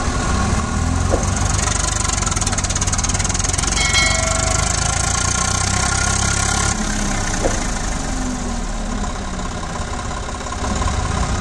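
A tractor engine rumbles steadily up close.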